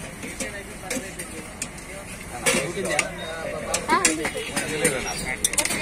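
Metal serving spoons clink against steel pots.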